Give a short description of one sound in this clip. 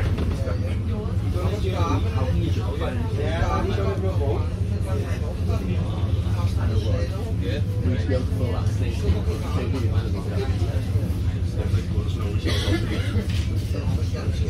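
A vehicle engine idles with a steady low rumble.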